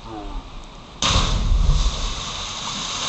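A body splashes loudly into water.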